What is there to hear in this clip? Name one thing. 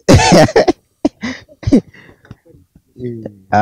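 A young man laughs briefly.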